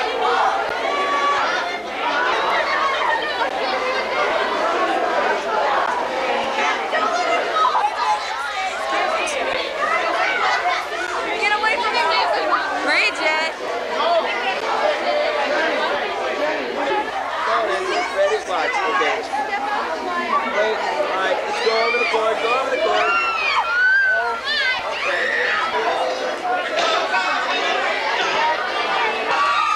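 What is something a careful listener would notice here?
A dense crowd chatters and laughs all around.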